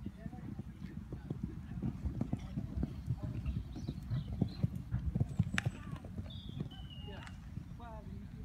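Horse hooves thud on soft sand at a canter.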